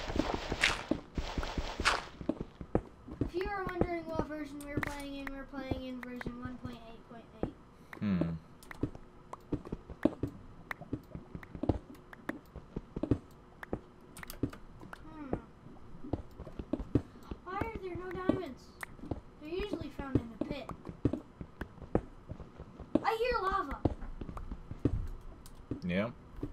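Footsteps thud on stone.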